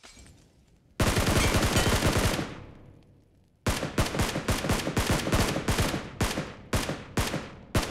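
Rapid bursts of gunfire ring out close by.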